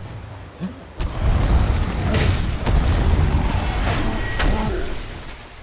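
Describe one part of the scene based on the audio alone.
A fireball whooshes through the air.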